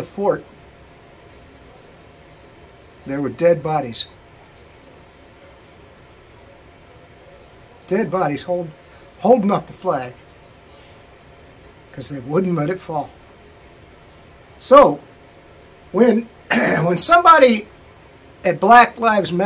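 A middle-aged man speaks calmly in short phrases close to the microphone, with pauses between.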